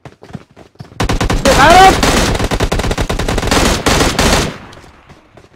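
Rapid gunfire bursts loudly and close.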